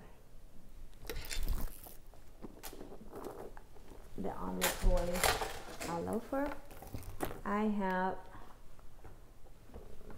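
A handbag rustles and bumps softly as it is handled.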